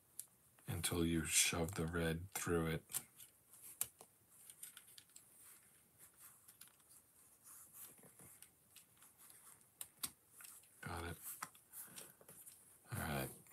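Plastic toy bricks click and snap together.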